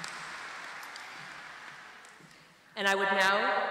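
An audience applauds in a large hall, fading away.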